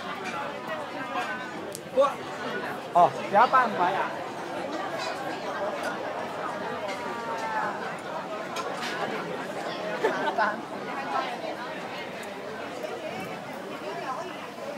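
A crowd of diners chatters all around outdoors.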